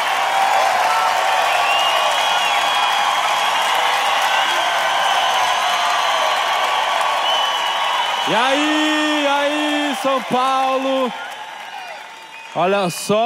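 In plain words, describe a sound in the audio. An audience cheers and applauds in a large hall.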